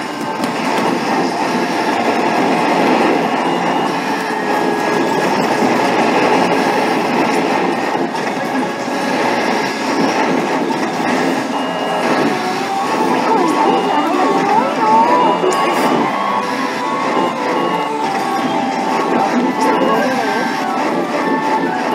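An arcade game plays loud music and battle sound effects through its speakers.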